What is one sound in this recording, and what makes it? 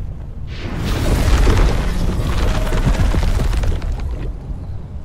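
A huge creature rumbles and roars.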